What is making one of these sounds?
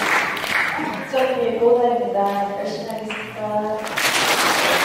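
A woman speaks into a microphone in an echoing hall.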